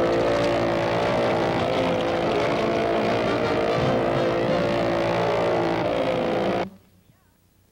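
A motorboat engine roars loudly.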